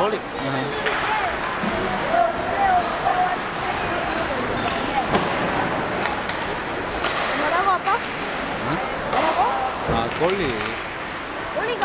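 Hockey sticks clack against a puck.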